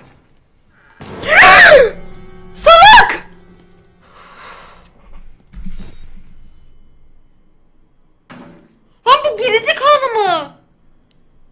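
A young woman screams loudly into a microphone.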